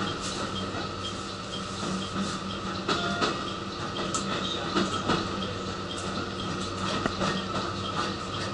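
A train rumbles and hums steadily along the track.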